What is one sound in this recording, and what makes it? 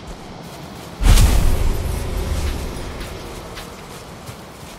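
A deep whooshing burst rumbles and slowly fades.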